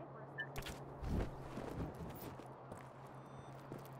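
Footsteps land and patter on hard stone.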